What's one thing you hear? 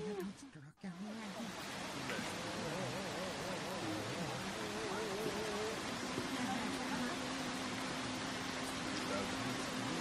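A shallow stream trickles over stones.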